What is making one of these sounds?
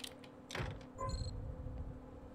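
A short electronic chime rings.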